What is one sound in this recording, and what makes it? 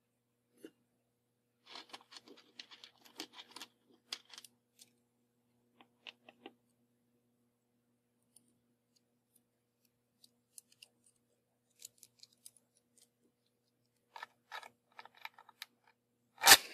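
Wooden matches click and rattle against each other as they are handled.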